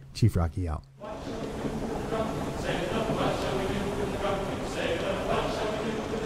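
Rough sea waves wash and surge.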